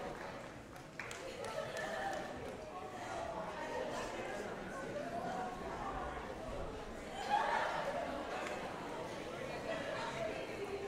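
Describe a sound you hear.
Young women chatter and call out excitedly nearby.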